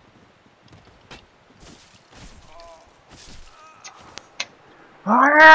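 Sword blows clash and thud in a fight.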